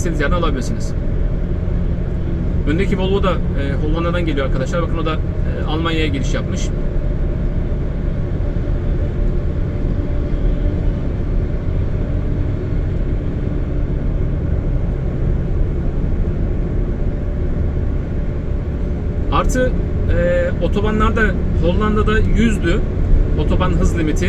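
A car engine drones steadily with road noise.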